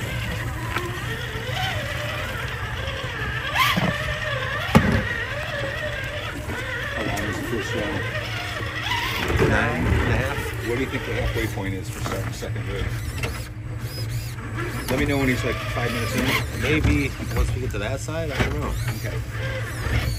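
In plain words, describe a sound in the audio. Plastic tyres crunch and scrape over rough rock.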